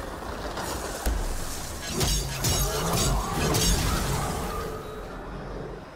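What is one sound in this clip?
Electric crackling bursts and heavy blasts ring out in a fight.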